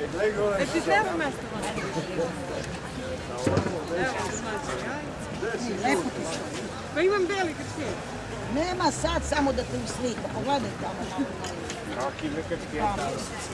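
Middle-aged and elderly women talk and chat with animation close by, outdoors.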